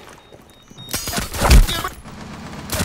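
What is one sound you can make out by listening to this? Gunshots fire in a quick burst at close range.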